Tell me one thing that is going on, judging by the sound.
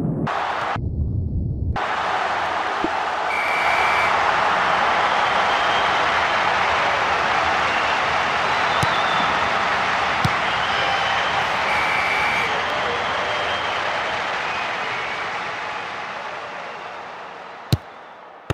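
A stadium crowd roars steadily and then fades.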